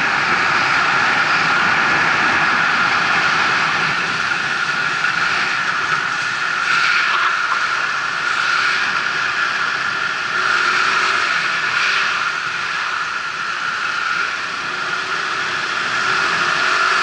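Traffic hums steadily on a busy road.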